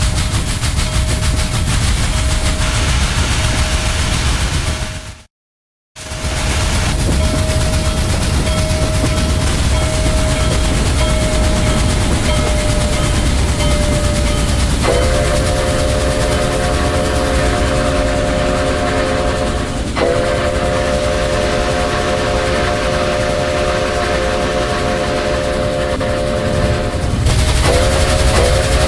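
A steam locomotive chugs and rumbles steadily.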